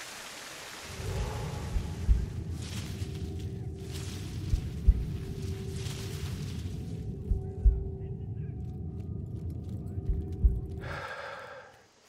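Footsteps rustle through tall grass and leaves.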